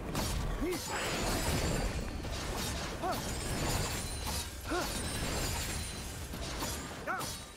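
Rapid weapon hits and magic bursts ring out in a fantasy battle game.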